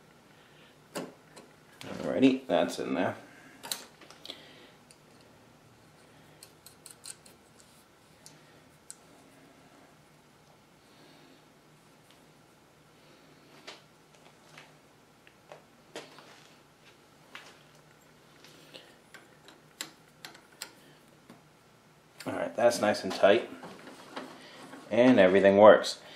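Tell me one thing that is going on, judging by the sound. Metal parts click and rattle as a machine's hand crank is handled.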